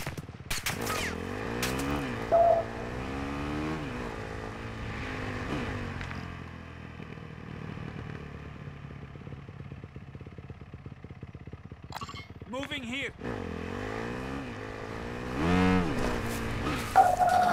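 A motorcycle engine revs and hums.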